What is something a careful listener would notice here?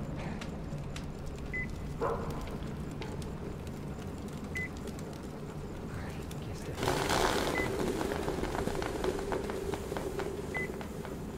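A fire crackles and pops in a stove.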